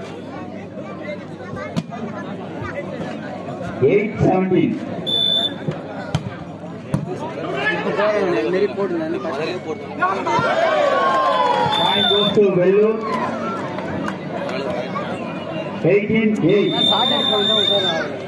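A large outdoor crowd chatters and shouts throughout.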